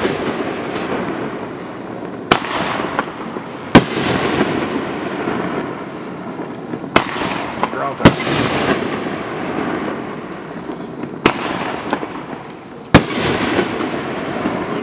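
Fireworks crackle and fizz after each burst.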